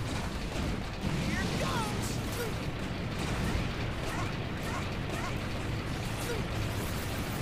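Explosions boom and crackle repeatedly.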